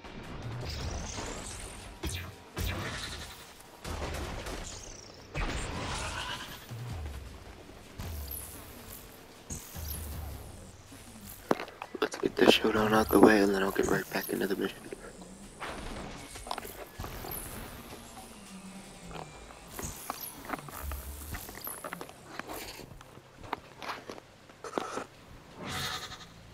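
Energy blasts whoosh and crackle in a video game.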